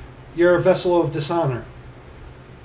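A middle-aged man speaks briefly and calmly, close to a microphone.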